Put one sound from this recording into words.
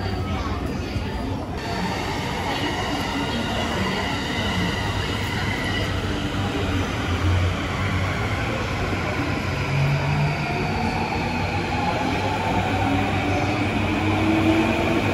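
A train pulls away from a platform, rumbling and screeching as it speeds up.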